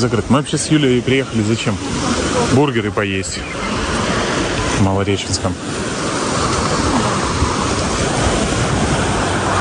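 Gentle sea waves wash against a shore.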